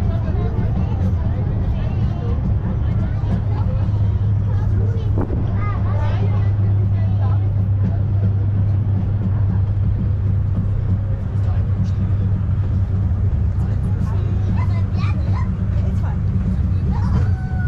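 Passengers talk quietly nearby.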